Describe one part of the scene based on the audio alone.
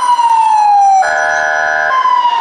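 A police horn blares in a short burst.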